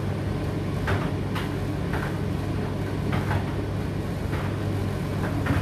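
A condenser tumble dryer hums with its drum tumbling.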